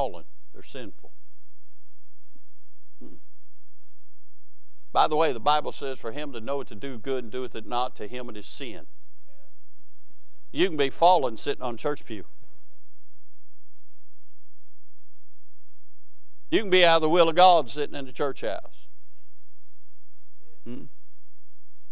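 A man preaches through a microphone, speaking with emphasis in bursts and pauses, in a large echoing hall.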